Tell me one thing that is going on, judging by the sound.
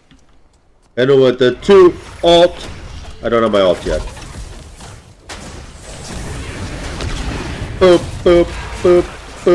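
Video game fighting effects clash and whoosh.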